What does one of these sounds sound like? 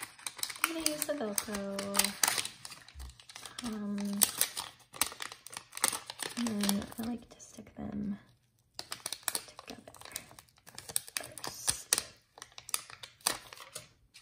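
Plastic packaging crinkles and rustles as hands handle it.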